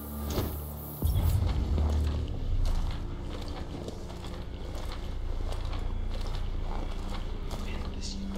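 Dry grass and brush rustle as someone pushes through it.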